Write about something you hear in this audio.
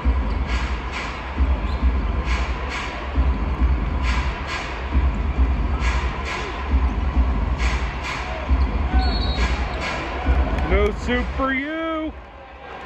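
A basketball bounces on a hardwood court in a large echoing arena.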